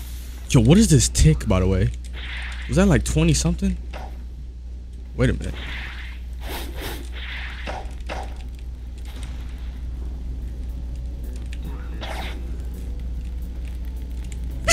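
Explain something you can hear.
Sword slashes whoosh through the air.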